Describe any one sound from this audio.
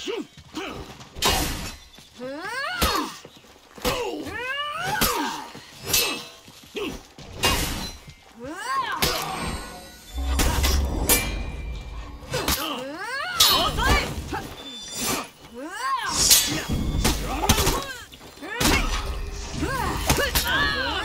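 Blades clash and strike with sharp metallic hits.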